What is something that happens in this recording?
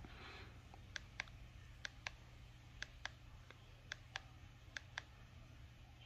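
A soundbar beeps softly several times.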